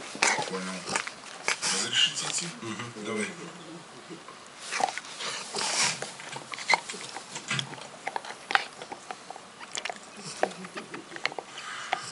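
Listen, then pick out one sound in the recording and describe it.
A dog chews and gnaws on a rubber ball.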